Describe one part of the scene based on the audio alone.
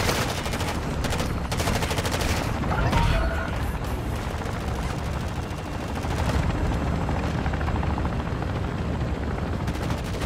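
A helicopter's rotor thumps loudly close by.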